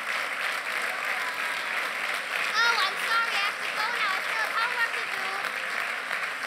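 A young girl speaks into a microphone.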